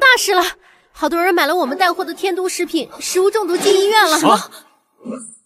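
A young woman speaks with concern.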